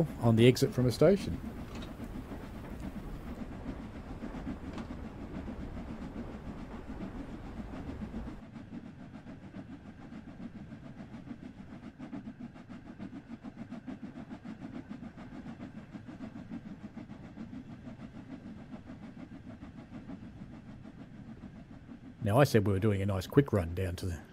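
A steam locomotive chugs steadily as the train rolls along the track.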